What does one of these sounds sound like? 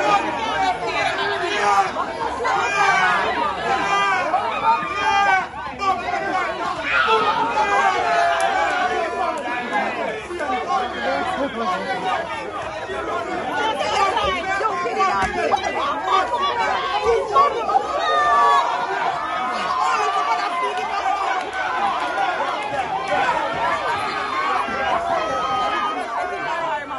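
A crowd of men and women shouts and cheers close by, outdoors.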